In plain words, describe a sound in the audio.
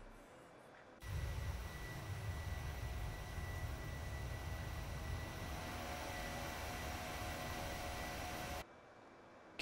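A jet airliner's engines hum steadily.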